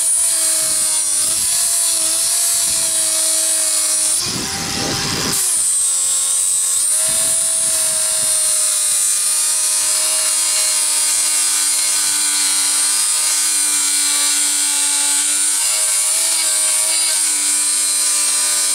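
An angle grinder whines loudly against metal, its pitch sagging briefly under load.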